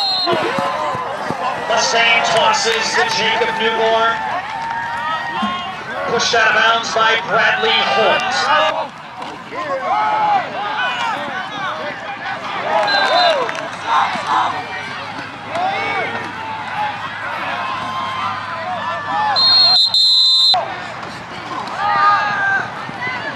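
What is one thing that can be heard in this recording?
A crowd cheers and chatters loudly outdoors.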